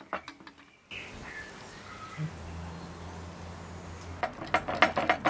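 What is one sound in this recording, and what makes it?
Liquid pours softly into a pan.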